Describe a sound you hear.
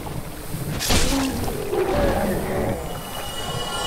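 A large creature shrieks and groans as it collapses.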